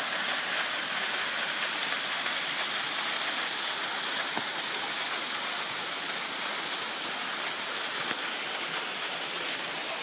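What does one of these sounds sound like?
A small waterfall splashes steadily into a pool.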